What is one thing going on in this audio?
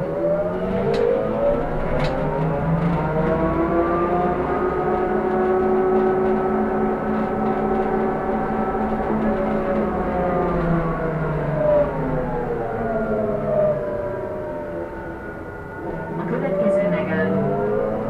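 Loose fittings rattle and clatter now and then inside a moving bus.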